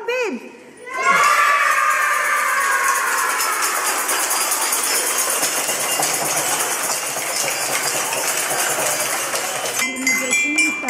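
A crowd of young children cheer and shout excitedly.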